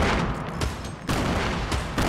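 A sniper rifle fires a sharp shot.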